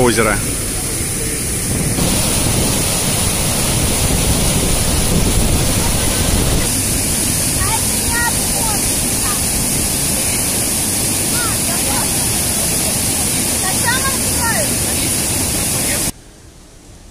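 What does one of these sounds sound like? Water rushes and churns loudly through a lock.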